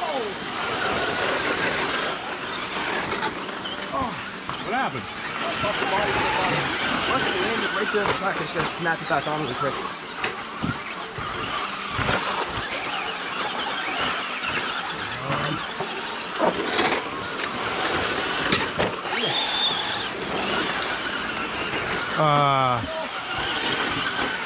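Small electric motors of toy cars whine as they race over dirt.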